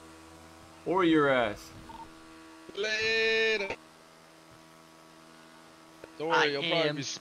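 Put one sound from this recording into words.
A motorcycle engine revs.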